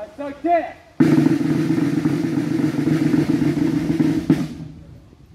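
A brass band plays a loud, steady chord outdoors.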